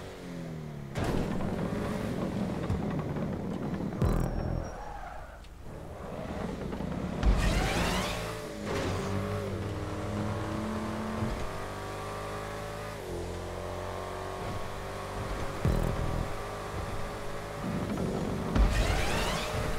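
Tyres thump and bang on a ramp.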